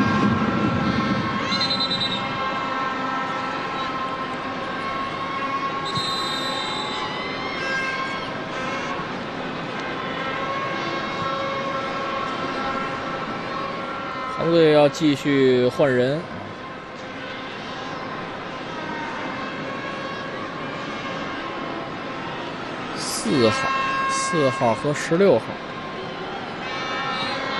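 A large stadium crowd murmurs and chants steadily in the open air.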